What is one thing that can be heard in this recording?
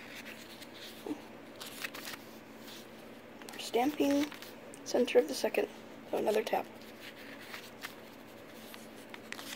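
Paper pages rustle softly as they are turned by hand.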